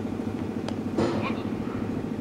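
A cricket ball strikes the stumps with a sharp knock.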